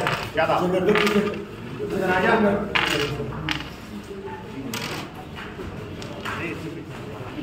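Wooden game pieces click and clack against each other.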